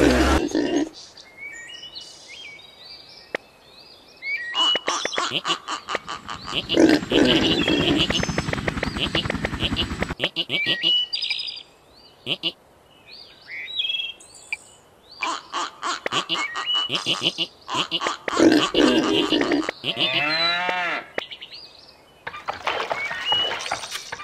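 Cartoon pigs grunt and squeal.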